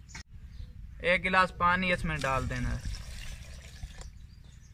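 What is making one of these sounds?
Water pours into a jug.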